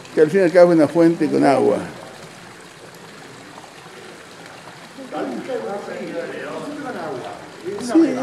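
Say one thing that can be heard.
Water pours from a spout and splashes steadily into a stone trough.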